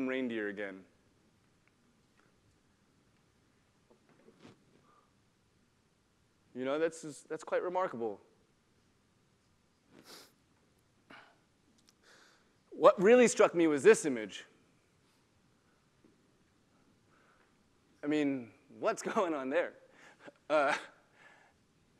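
A man speaks into a microphone in a large echoing hall, in short phrases with pauses.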